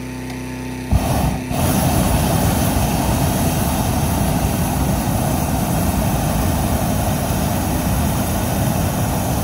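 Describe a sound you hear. A gas burner roars loudly.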